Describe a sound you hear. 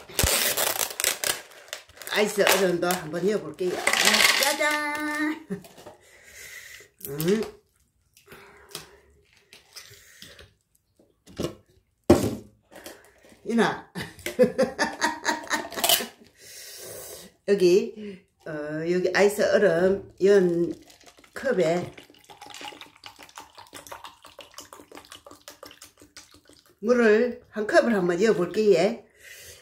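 Water trickles as it is poured from a cup.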